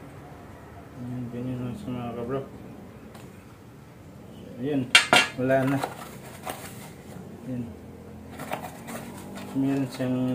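A man talks calmly, close by.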